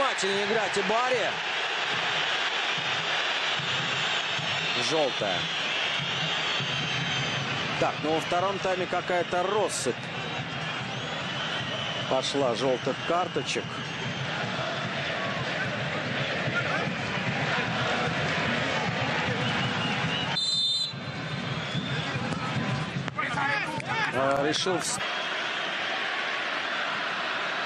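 A large crowd roars and chants steadily in a big open stadium.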